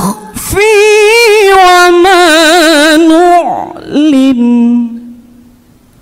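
A man chants in a long, wavering melodic voice through a microphone, then falls silent.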